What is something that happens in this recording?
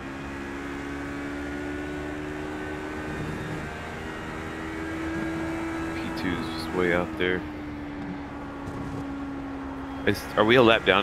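A racing car engine drones steadily, shifting pitch as the car speeds up and slows down.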